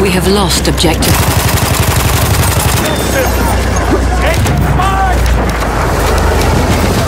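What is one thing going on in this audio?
A machine gun fires rapid bursts.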